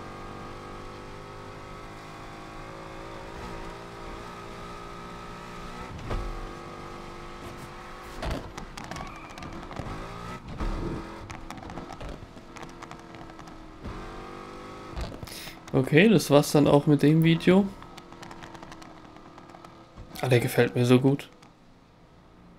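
A car engine hums steadily and shifts in pitch as the car speeds up and slows.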